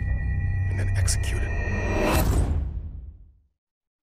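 A man speaks in a low, weary voice.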